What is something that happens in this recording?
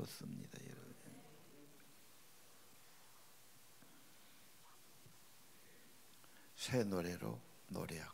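An elderly man speaks slowly and calmly through a microphone in a reverberant hall.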